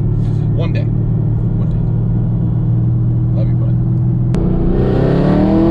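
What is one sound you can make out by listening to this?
A car engine hums steadily at idle.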